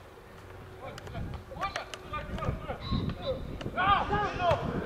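Young men shout and call to each other outdoors.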